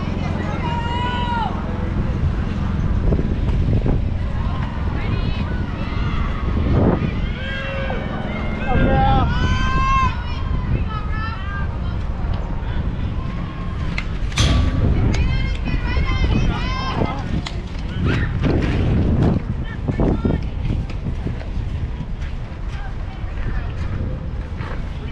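Young girls shout and cheer across an open field.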